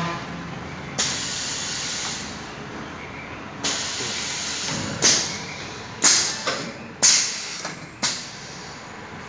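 Pneumatic clamps on a PVC window welding machine hiss with bursts of air.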